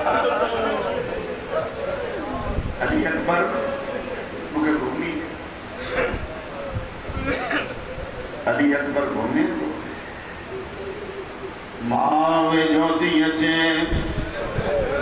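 A man recites with strong emotion through a microphone, in an echoing hall.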